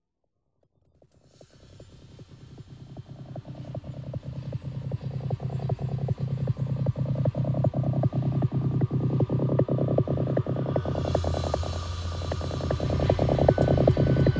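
Electronic dance music with a fast, pounding beat plays loudly over speakers outdoors, fading in at first.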